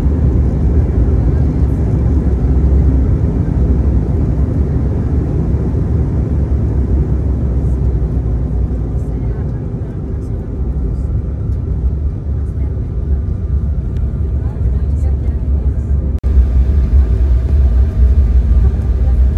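A jet aircraft's engines roar steadily, heard from inside the cabin.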